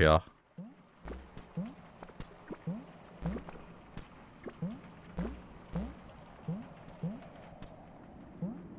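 Soft plucked electronic notes sound at intervals.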